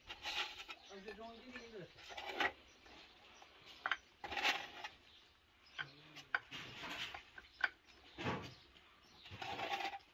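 Cookies clink softly as they are set onto a ceramic plate.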